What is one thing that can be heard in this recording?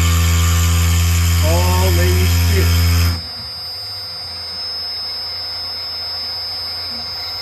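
A milling machine's spindle whirs steadily.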